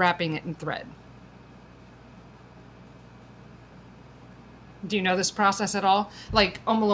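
A woman speaks calmly and close to a microphone, with pauses.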